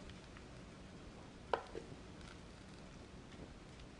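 A spatula scrapes on a metal pan.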